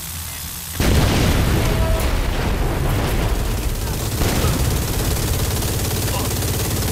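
A rotary machine gun fires in a rapid, continuous roar.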